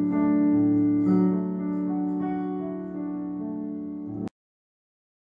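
An acoustic guitar strums a chord.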